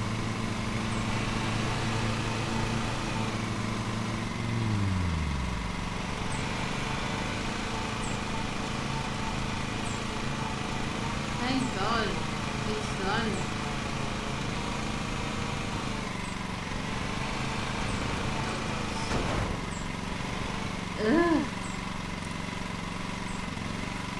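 A ride-on mower engine hums steadily.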